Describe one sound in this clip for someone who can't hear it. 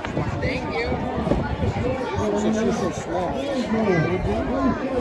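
A crowd of men and women chat close by.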